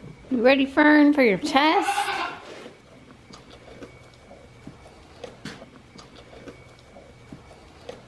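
A goat munches on dry feed.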